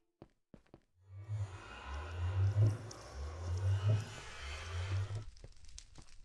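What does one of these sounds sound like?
A portal hums and whooshes with a low rumble.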